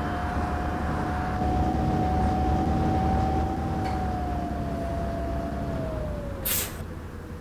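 A bus engine hums and winds down as the bus slows to a stop.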